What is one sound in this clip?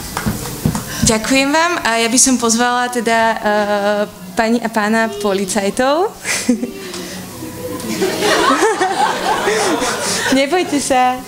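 A young girl sings into a microphone.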